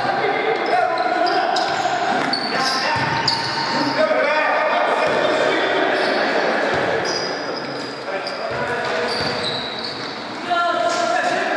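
A ball is kicked with dull thumps.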